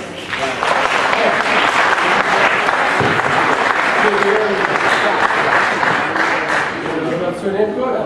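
A small crowd applauds in a room.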